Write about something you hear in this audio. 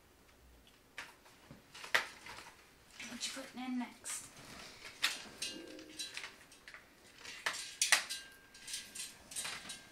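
A cat paws and noses at a bag, making it rustle and crinkle.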